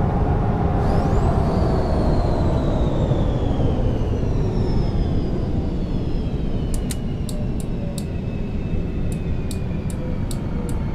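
A bus engine rumbles steadily, its whine slowly falling as the bus slows down.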